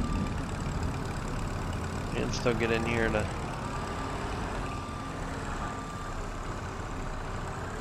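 A small loader engine hums as it drives slowly.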